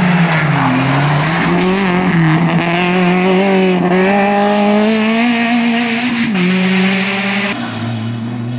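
A rally car engine revs hard and changes pitch as the car races through a bend.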